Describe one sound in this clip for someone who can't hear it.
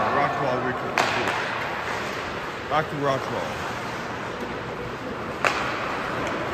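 A hockey stick sharply strikes a puck a few times.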